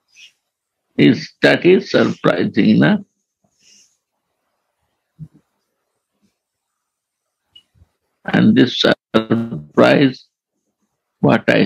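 An elderly man speaks calmly and slowly through a microphone, with long pauses.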